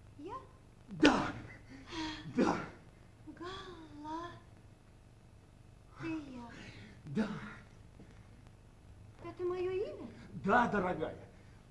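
A woman speaks theatrically in reply.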